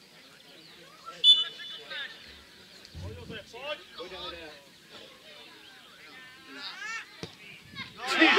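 Men shout in the distance across an open football pitch.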